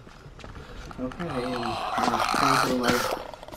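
A man shouts and growls loudly.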